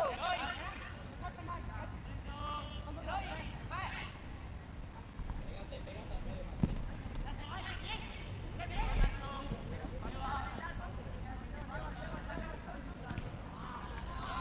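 Players shout and call to each other across an open outdoor pitch.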